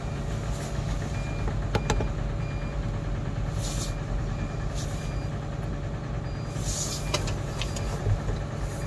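A diesel engine rumbles steadily.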